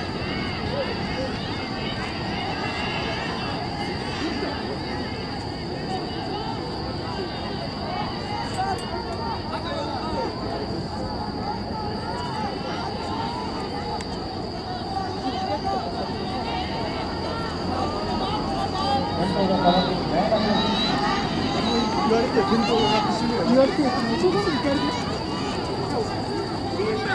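A crowd of spectators cheers and shouts outdoors, growing louder as runners approach.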